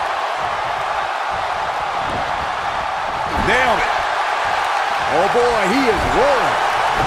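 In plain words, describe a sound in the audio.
A large crowd roars steadily in a big arena.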